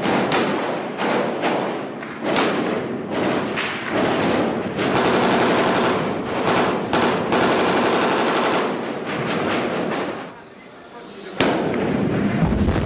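Rifle shots crack and echo down a concrete corridor.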